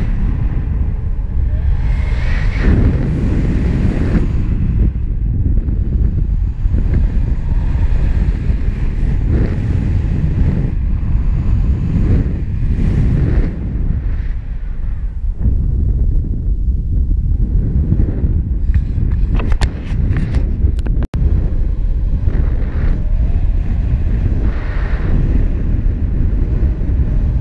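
Strong wind rushes and buffets past the microphone outdoors.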